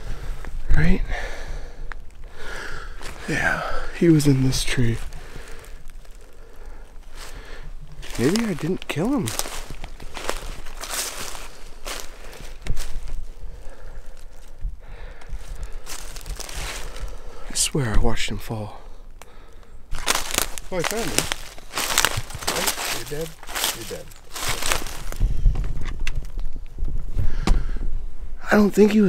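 A young man talks quietly.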